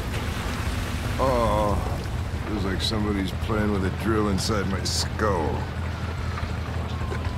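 An older man groans and speaks wearily, close by.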